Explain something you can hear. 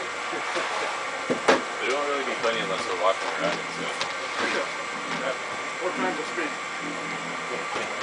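Men talk casually nearby, outdoors.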